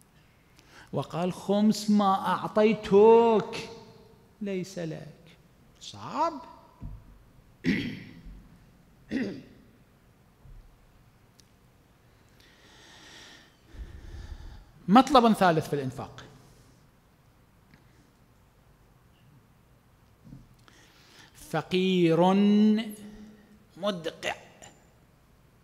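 A man speaks calmly into a microphone, with pauses between phrases.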